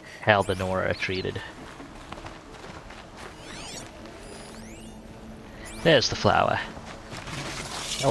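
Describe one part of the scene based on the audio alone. Footsteps run through rustling grass and brush.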